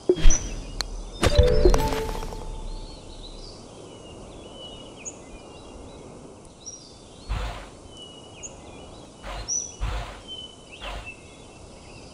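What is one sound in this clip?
Soft whooshes and clicks play as game menus open and close.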